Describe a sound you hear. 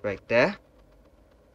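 A computer plays a short two-note chime.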